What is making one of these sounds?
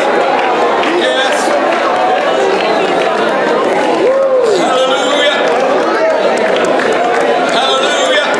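A woman sings into a microphone in a large echoing hall.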